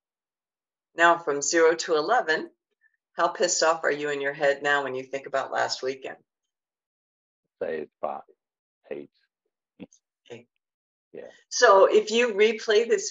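An older woman speaks with animation over an online call.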